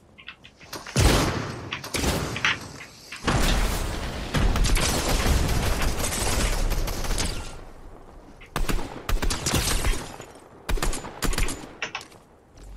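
Bursts of rifle fire crack rapidly in a video game.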